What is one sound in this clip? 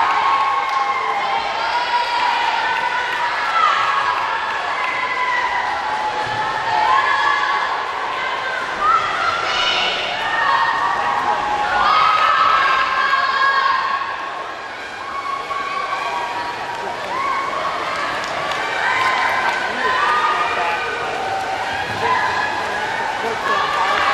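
A crowd of young spectators cheers and shouts, echoing in a large hall.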